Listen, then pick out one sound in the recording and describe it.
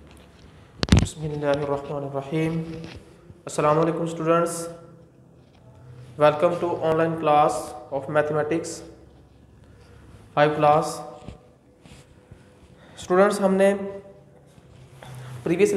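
A man speaks calmly through a clip-on microphone, explaining in short phrases.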